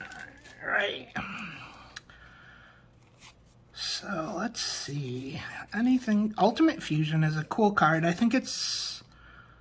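Playing cards rustle and slide against each other.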